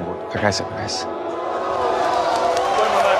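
A crowd cheers in a large stadium.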